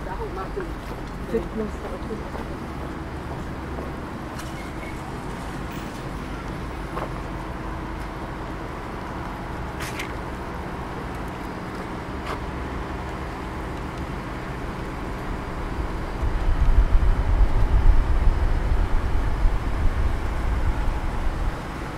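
Wind blows outdoors, gusting harder toward the end.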